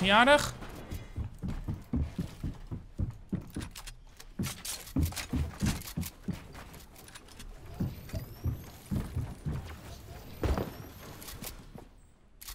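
Rapid clicking and clattering game building sounds play.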